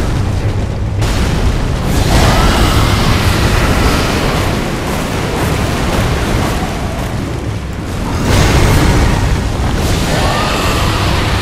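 Magical blasts roar and crackle.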